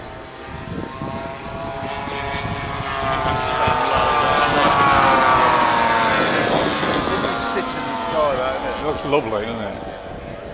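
Propeller planes roar past low overhead, growing louder and then fading.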